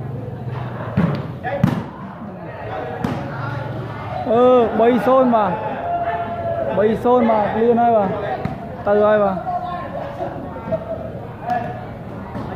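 A volleyball is struck with bare hands.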